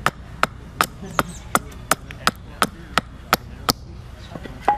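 A wooden mallet strikes the back of a blade in quick, steady blows, splitting wood.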